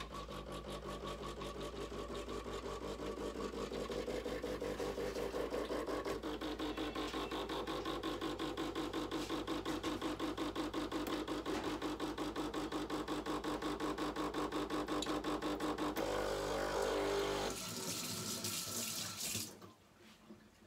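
A coffee machine pump buzzes and rattles rapidly.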